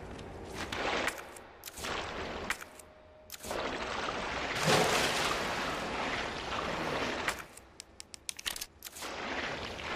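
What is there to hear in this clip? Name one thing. Footsteps sound in a tunnel.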